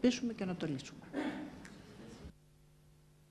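A woman speaks calmly into microphones.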